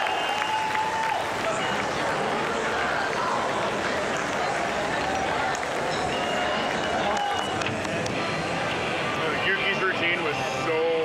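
A large crowd chatters and murmurs in an echoing hall.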